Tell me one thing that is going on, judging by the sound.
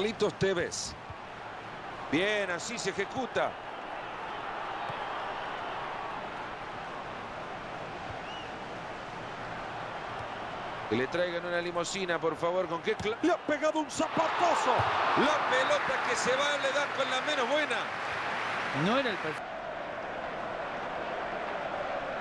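A large crowd roars and murmurs steadily in a stadium.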